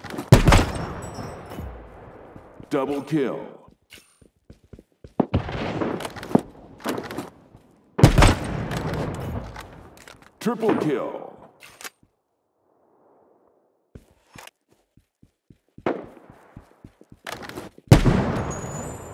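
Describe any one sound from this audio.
A sniper rifle fires loud shots that boom and echo away.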